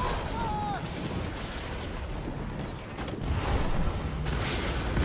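Explosions burst with a loud roar.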